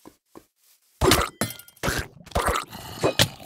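A zombie groans loudly close by.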